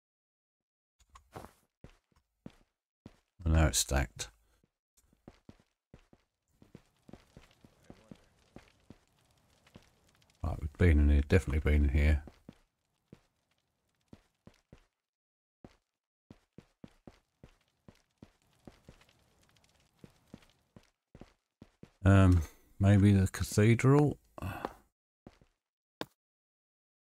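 Footsteps tap on a stone floor at a walking pace.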